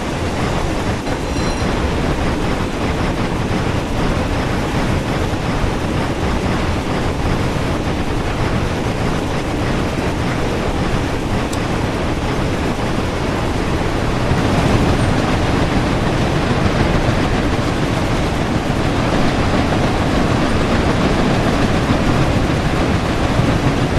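A steam locomotive rumbles and hisses steadily while running.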